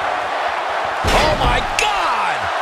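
A wrestler is slammed onto a wrestling ring mat with a heavy thud.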